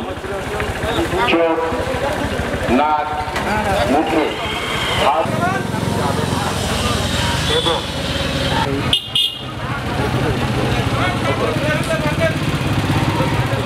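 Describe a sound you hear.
Men talk outdoors.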